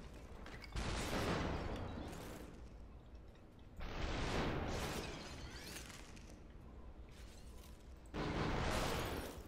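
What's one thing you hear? A gun fires with loud, booming blasts.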